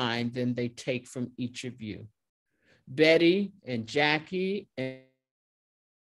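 A middle-aged woman speaks with emphasis over an online call.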